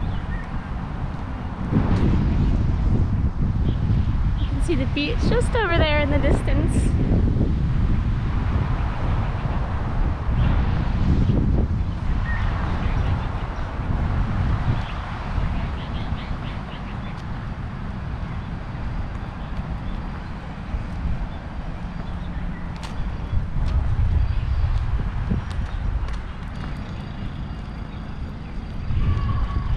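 Wind blows steadily outdoors, rumbling and gusting against the microphone.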